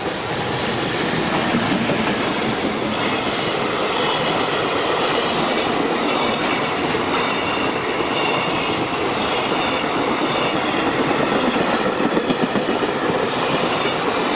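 A long freight train rumbles past close by on the tracks.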